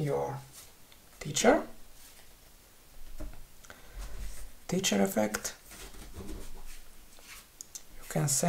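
Playing cards rustle and tap softly as a hand picks them up and lays them down.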